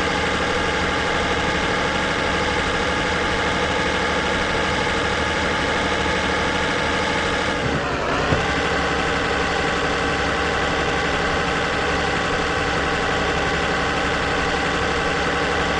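A truck engine drones steadily, briefly dipping in pitch as the gear shifts.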